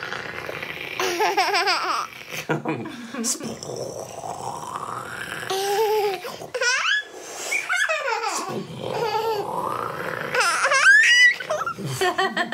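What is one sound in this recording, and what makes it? A baby laughs and squeals loudly.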